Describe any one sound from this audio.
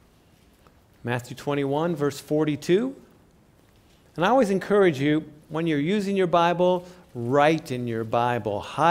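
A man reads aloud calmly through a microphone in a room with a slight echo.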